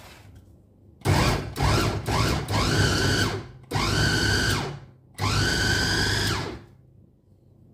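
An electric chopper whirs loudly in short bursts.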